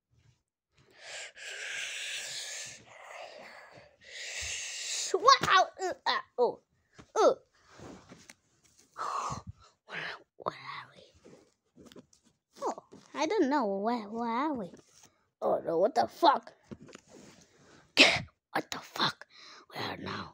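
Paper sheets rustle and shuffle close by.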